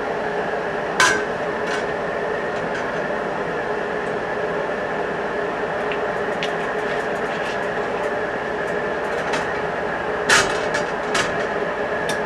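A metal pan clanks against a stove.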